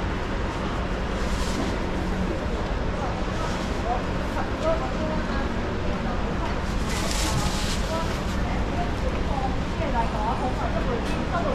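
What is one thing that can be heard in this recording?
A middle-aged woman speaks calmly nearby.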